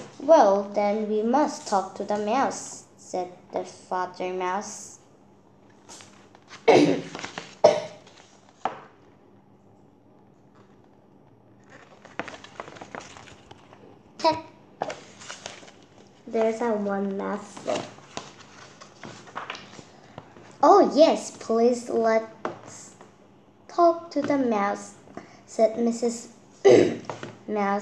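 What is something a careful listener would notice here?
A young girl reads aloud close by.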